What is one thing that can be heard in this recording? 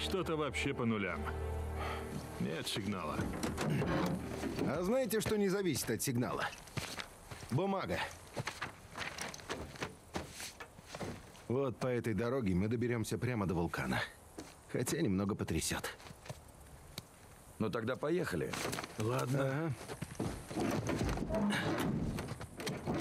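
A second man answers in a relaxed voice.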